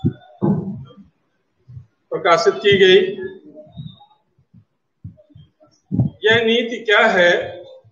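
A middle-aged man speaks loudly and with emphasis, close by.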